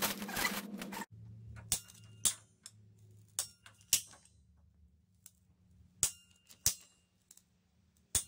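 A pipe cutter clicks and snaps shut on a plastic pipe.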